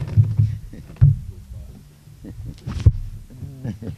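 An acoustic guitar knocks hollowly as it is lifted and set down.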